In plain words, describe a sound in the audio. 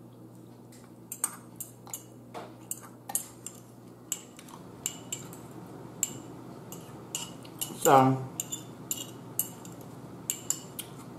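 A woman chews and slurps noodles close to a microphone.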